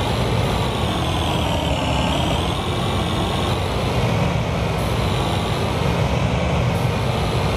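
A combine harvester engine rumbles steadily.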